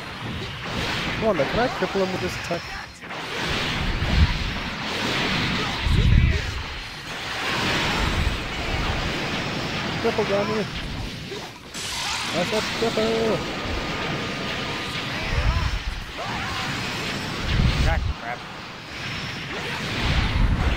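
Energy blasts roar and crackle.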